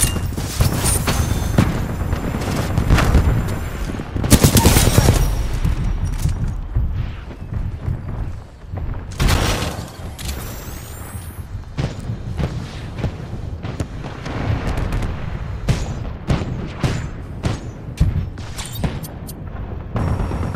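Heavy mechanical footsteps clank and stomp nearby.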